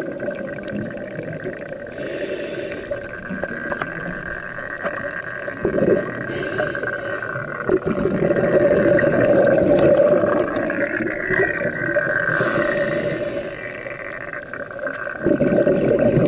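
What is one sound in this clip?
Air bubbles gurgle and rumble close by underwater.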